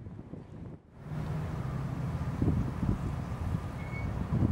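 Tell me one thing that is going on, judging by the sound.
A car engine rumbles low as a car pulls up.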